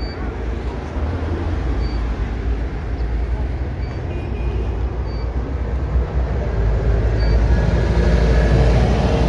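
A bus engine rumbles louder as it pulls away close by.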